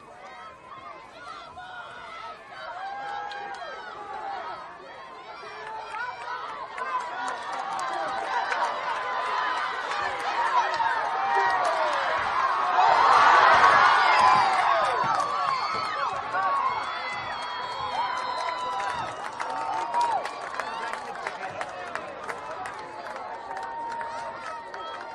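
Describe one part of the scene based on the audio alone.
Players and coaches shout across the field.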